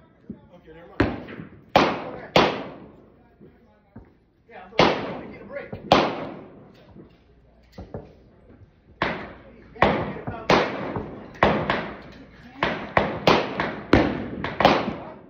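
A rifle fires shot after shot, each crack echoing off nearby walls.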